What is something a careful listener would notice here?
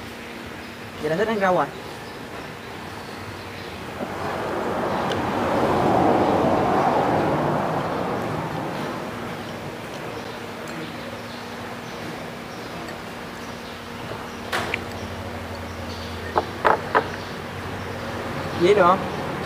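A young man speaks briefly and casually close by.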